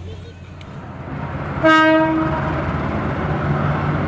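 A diesel locomotive engine rumbles as it approaches.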